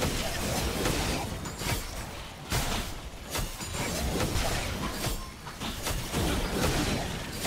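Magic spells crackle and burst in a fast game fight.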